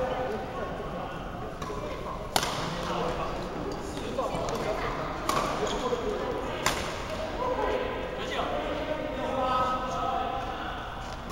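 Two young men talk calmly nearby in a large echoing hall.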